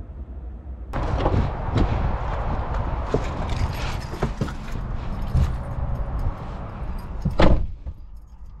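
A car door opens and thuds shut.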